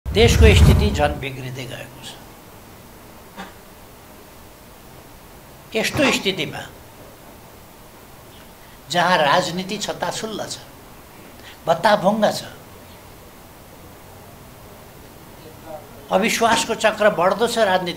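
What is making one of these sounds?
An elderly man speaks slowly into microphones, with long pauses.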